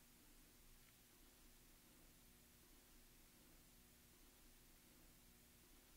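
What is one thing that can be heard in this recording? A plastic buckle clicks as it is fastened.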